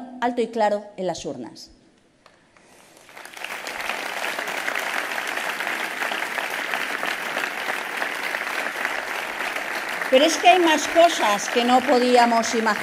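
A middle-aged woman speaks forcefully into a microphone to a crowd.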